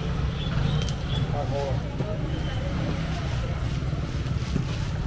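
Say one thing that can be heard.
People chatter nearby in a busy, noisy crowd.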